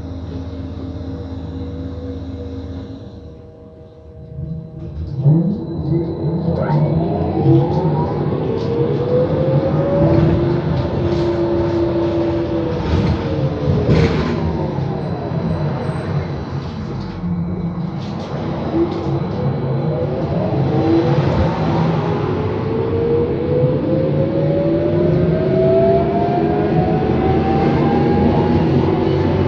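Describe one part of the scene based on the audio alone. Tyres rumble on the road beneath a moving bus.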